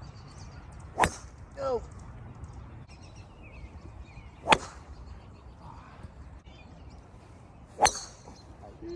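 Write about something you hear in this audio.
A golf club strikes a ball with a sharp crack, three times.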